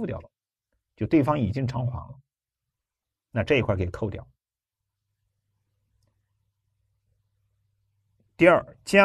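A middle-aged man lectures calmly into a close microphone, speaking in short phrases with pauses.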